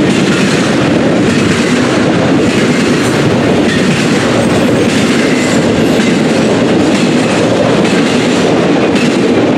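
An intermodal freight train rumbles and clatters past close by on the rails.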